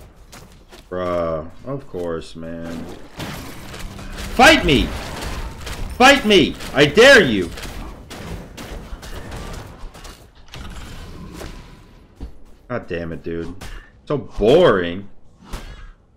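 A game character grunts and shouts with effort.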